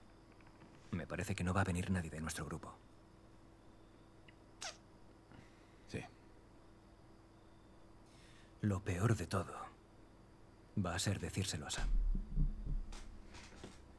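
A man speaks quietly and calmly.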